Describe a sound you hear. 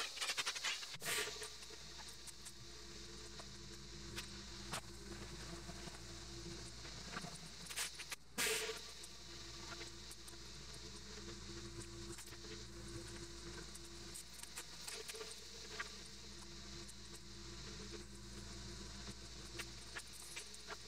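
A surface cleaner whirs steadily as it scrubs.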